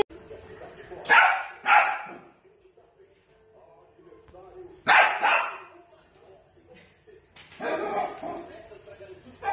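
Dogs bark excitedly.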